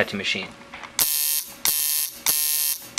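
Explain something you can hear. A tattoo machine buzzes loudly in short bursts.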